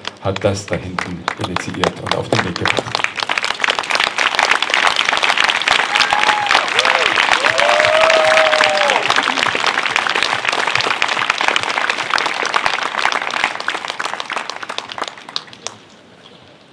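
A crowd claps outdoors.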